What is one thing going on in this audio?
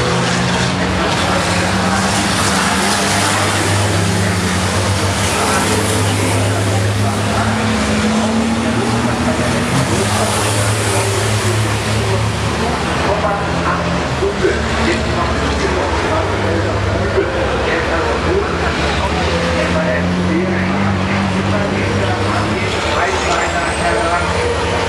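Loud truck engines roar steadily.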